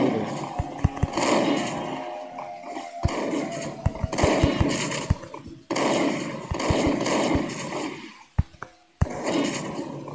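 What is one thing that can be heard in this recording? Gunshots fire in quick bursts, echoing in a hard room.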